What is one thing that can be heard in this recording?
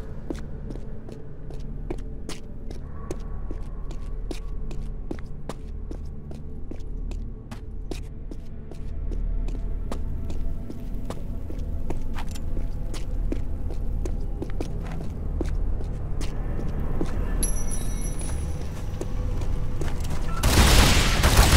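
Footsteps run steadily on a stone floor.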